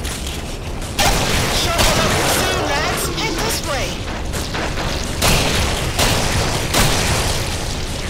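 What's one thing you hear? Shotgun blasts go off loudly.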